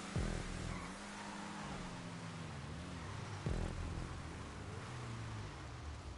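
Race car engines of other cars roar nearby.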